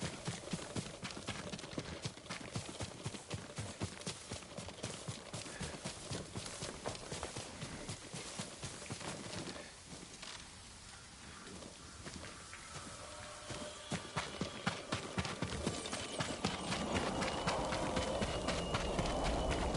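Quick running footsteps thud on grass and dirt.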